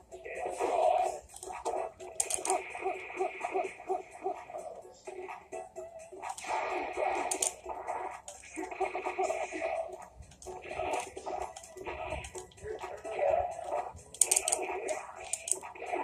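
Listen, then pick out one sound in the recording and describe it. Fighting game music and hit effects play from a television speaker throughout.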